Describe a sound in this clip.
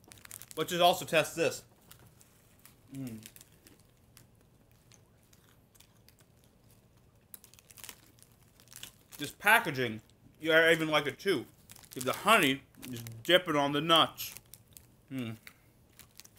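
A snack packet crinkles in a man's hands.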